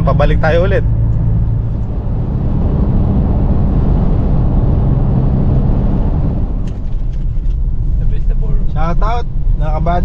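A car engine hums steadily while driving along a road.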